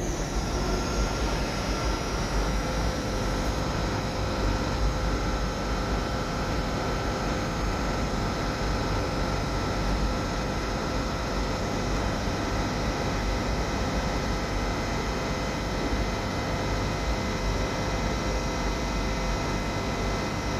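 An electric locomotive idles with a steady hum and whine in a large echoing hall.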